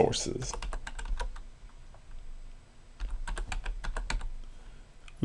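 Keys on a keyboard click rapidly as someone types.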